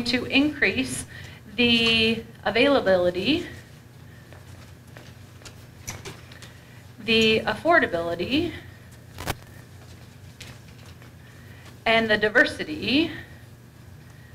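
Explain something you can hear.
A woman speaks clearly through a headset microphone in bursts, pausing between phrases.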